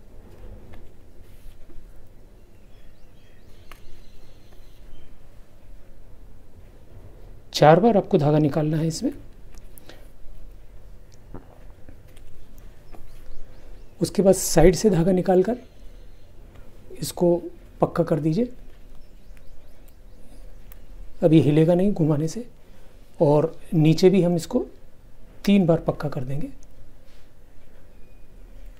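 Cloth rustles softly as hands handle it.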